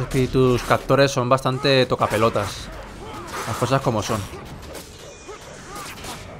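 Fiery spells blast and crackle during a fight.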